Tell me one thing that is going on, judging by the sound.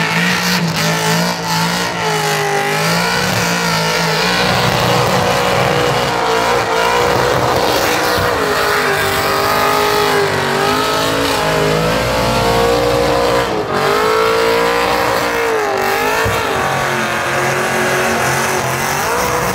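A car engine revs hard and loudly, rising and falling in pitch.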